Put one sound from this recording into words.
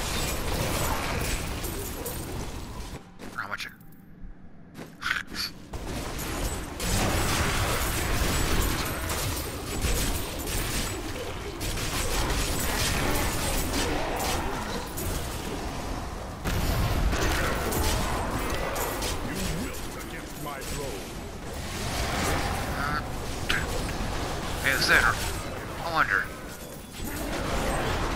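Fiery spell blasts and weapon hits crash and roar in a dense, busy battle.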